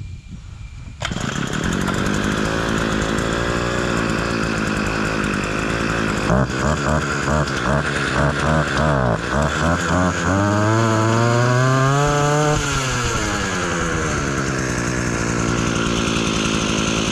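A petrol lawn mower engine starts up and runs with a loud, steady drone.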